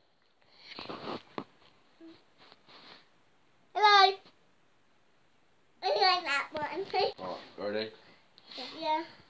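A young child talks and squeals in short, high bursts close by.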